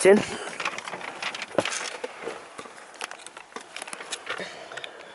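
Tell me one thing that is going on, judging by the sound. A car's interior rattles and knocks over the road.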